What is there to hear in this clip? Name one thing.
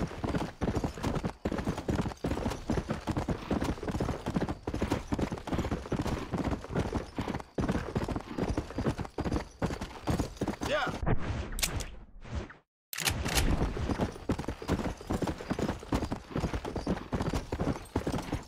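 Horse hooves gallop quickly over a dirt trail.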